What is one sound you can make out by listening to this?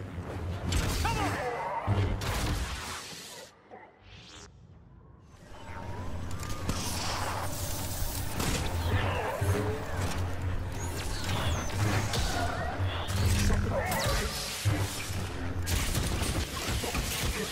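Blaster shots fire in bursts.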